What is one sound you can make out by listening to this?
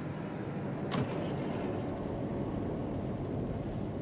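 A wooden crate lid creaks open.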